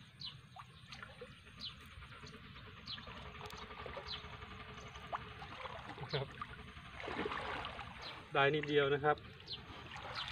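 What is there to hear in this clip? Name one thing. Water splashes as a man wades and lifts a net.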